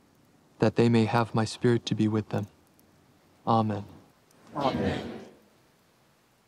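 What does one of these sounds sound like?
A man speaks slowly and calmly, close by.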